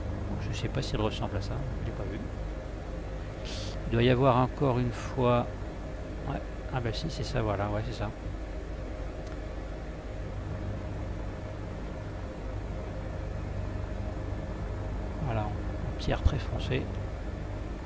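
A helicopter's engine and rotor drone steadily.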